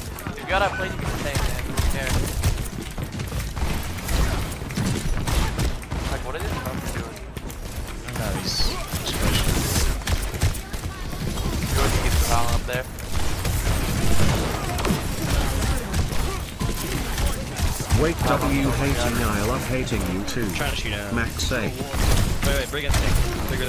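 A young man talks close to a microphone, with animation.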